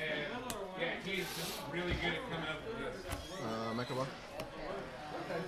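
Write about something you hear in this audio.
Playing cards tap and slide softly on a table.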